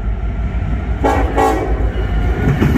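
A train horn blows briefly.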